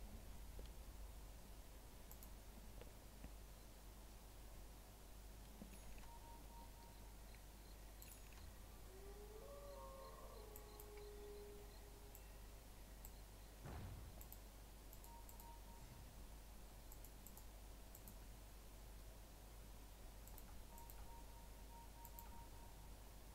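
Game sound effects of spells and clicks play quietly.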